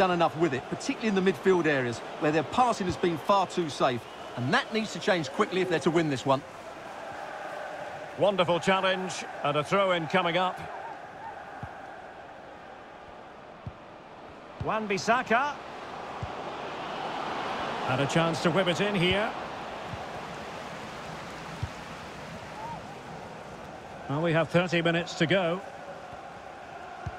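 A large stadium crowd murmurs and cheers steadily, swelling for a moment.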